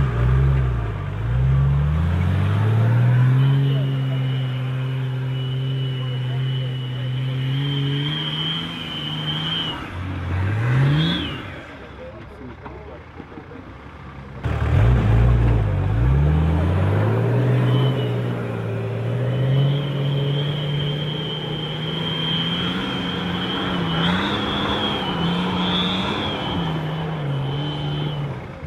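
An off-road vehicle's engine revs hard and roars as it climbs.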